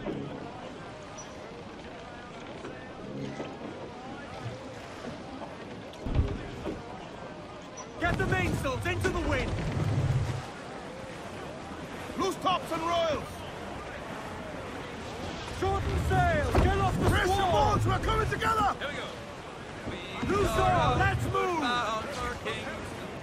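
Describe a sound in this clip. Waves wash against a sailing ship's hull.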